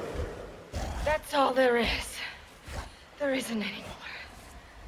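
A young woman speaks in a frightened, breathless voice.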